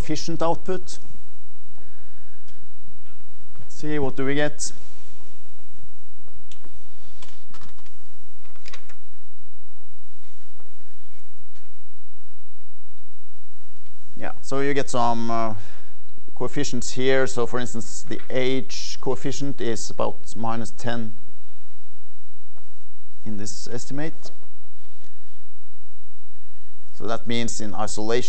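An elderly man lectures calmly in a room with slight echo, with long pauses.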